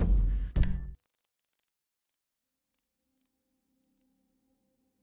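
Short soft beeps tick several times.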